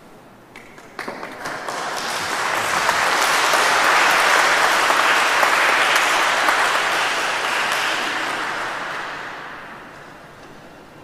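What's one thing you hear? A crowd applauds loudly in a large echoing hall, then the applause fades.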